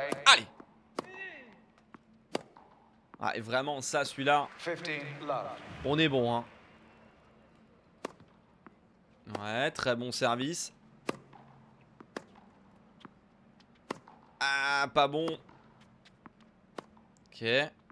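A tennis ball is struck with a racket, with sharp pops.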